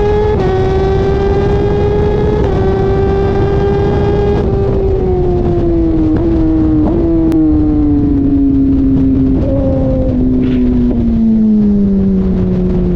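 A motorcycle engine roars loudly at high revs, shifting gears and then slowing down.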